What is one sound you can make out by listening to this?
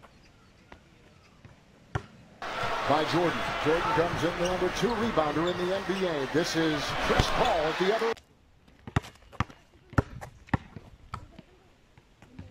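A basketball bounces sharply on an outdoor court.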